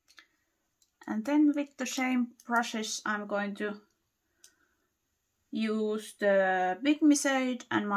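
A woman talks close to a microphone, calmly and with animation.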